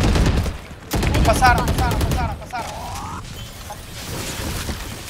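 Rapid gunshots fire in a burst.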